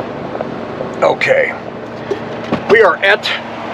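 A middle-aged man talks calmly, close to the microphone.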